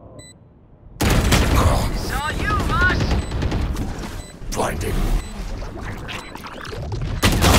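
A flash grenade bursts with a loud blast and ringing.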